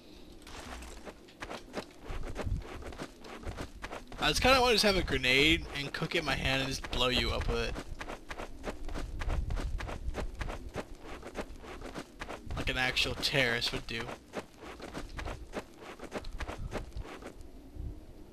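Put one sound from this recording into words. Footsteps crunch quickly on sandy ground.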